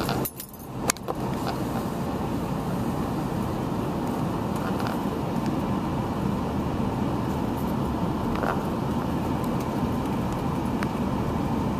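A car drives along with a steady road rumble.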